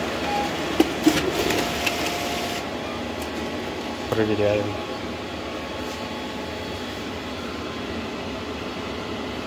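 A printer hums steadily.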